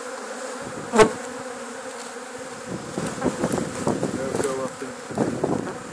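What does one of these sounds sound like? A cardboard box scrapes and thumps onto a wooden hive.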